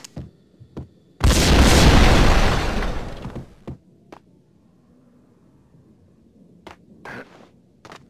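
Footsteps thud on stone stairs.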